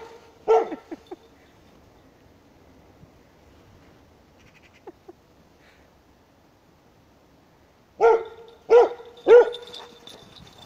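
A dog barks loudly outdoors.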